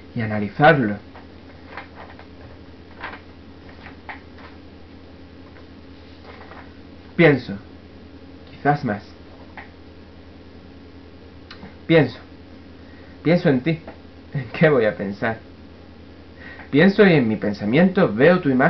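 A young man speaks in short bursts, close to the microphone.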